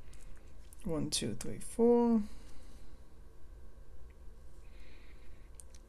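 Small plastic toy bricks click and clatter as they are sorted by hand.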